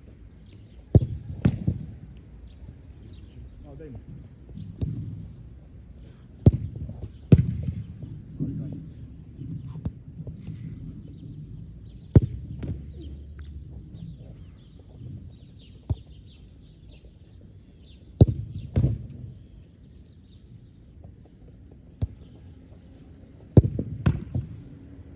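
A football is kicked hard, with sharp thumps.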